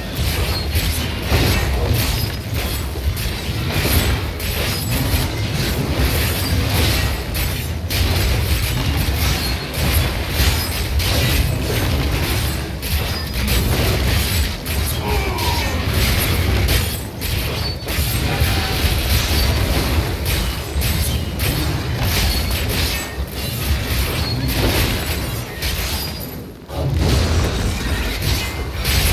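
Game spells crackle and burst in a fierce battle.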